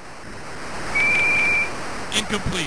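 A referee's whistle blows one short, shrill blast.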